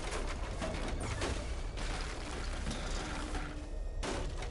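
Rapid gunfire rattles and echoes.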